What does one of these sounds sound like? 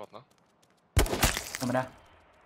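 Gunshots crack in a quick burst.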